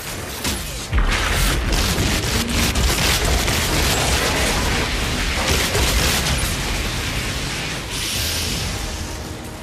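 A blade swooshes through the air.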